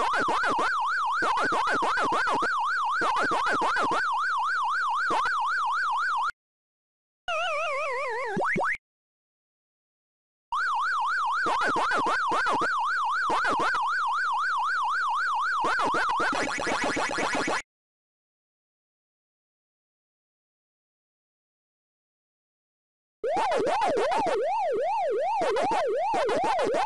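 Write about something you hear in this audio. An arcade maze game plays a warbling electronic siren.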